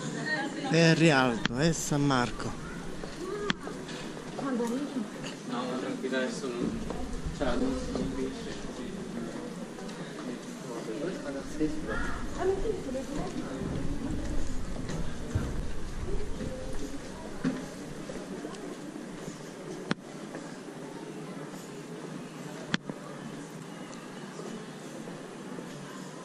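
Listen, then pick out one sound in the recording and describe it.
Footsteps tap on stone paving.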